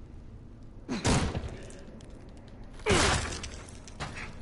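Heavy blows thud in a violent struggle.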